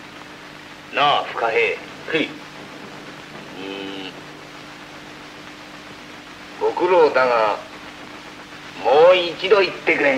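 A man speaks with emotion, close by.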